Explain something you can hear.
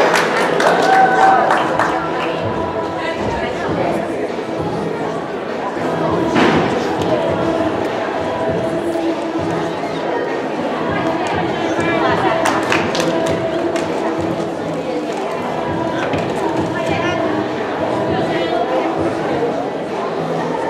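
A crowd of spectators chatters throughout a large echoing gym.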